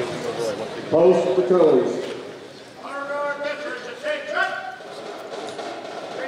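An elderly man speaks into a microphone in a large hall.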